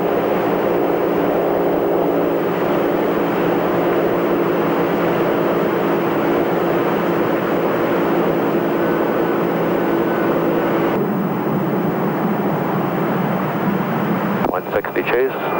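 Jet engines roar steadily nearby.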